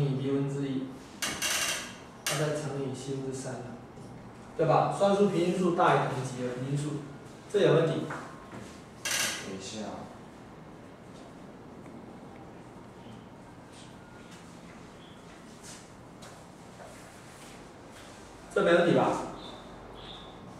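A man speaks in a lecturing tone, with pauses.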